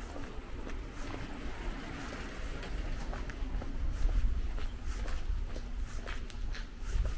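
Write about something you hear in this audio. Footsteps tap steadily on a paved street at a walking pace.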